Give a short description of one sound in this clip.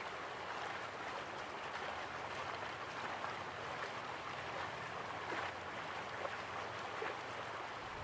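Waterfalls rush steadily in the distance.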